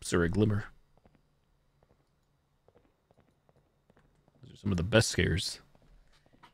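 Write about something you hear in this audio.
A man speaks loudly and briefly into a close microphone.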